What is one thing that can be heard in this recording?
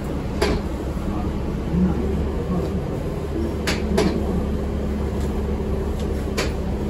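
The bus body rattles and clanks now and then as it moves.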